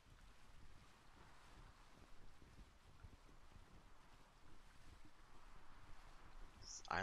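Wind blows over open sea.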